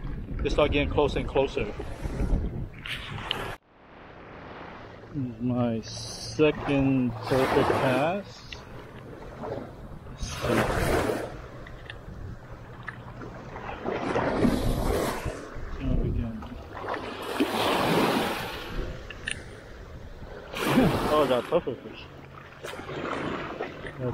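Small waves lap and wash against a sandy shore.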